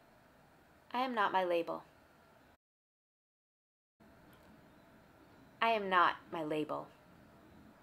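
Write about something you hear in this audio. A woman speaks a short phrase close by.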